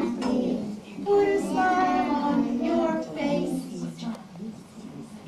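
A group of young children sing together nearby.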